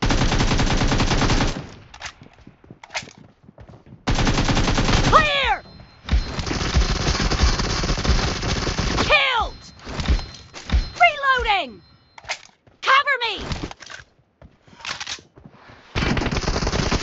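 Rapid gunfire rattles in short, loud bursts.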